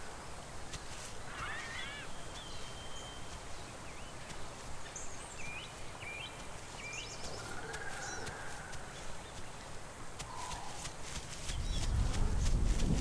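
Wind rustles steadily through tall grass outdoors.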